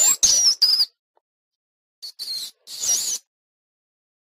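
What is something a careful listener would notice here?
A small animal squeaks in short high bursts.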